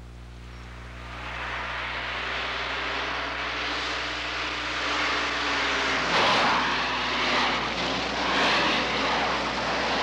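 A car engine roars.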